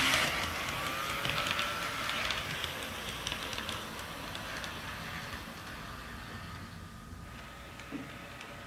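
Small train wheels click over rail joints.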